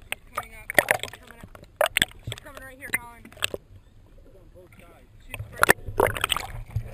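A whale calls underwater with squeaks, whistles and groans.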